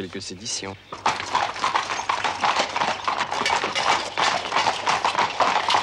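Horses' hooves clatter on cobblestones at a gallop.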